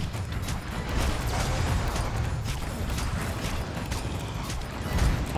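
A large monster roars and thrashes.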